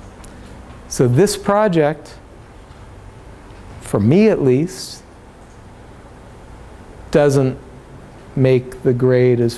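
A middle-aged man speaks in short bursts through a microphone in a room with a slight echo.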